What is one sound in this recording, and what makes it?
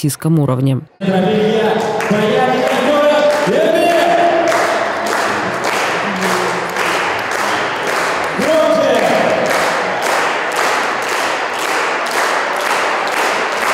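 Music with a steady beat plays through loudspeakers in a large echoing hall.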